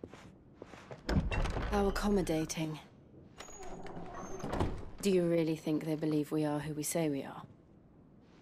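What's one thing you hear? A young woman speaks calmly and questioningly, close by.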